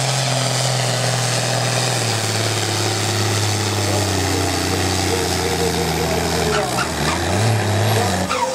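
A sled scrapes heavily along a dirt track.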